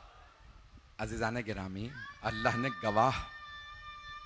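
A man speaks with emotion through a microphone.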